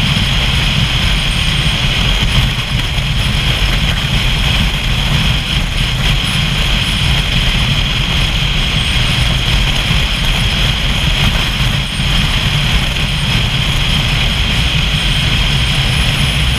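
Wind rushes loudly and buffets against the rider.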